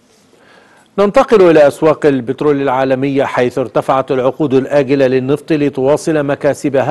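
A middle-aged man speaks clearly and steadily, close to a microphone.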